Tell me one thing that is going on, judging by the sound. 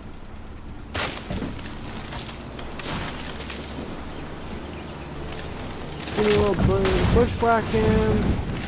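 Tyres rumble over a rough dirt track.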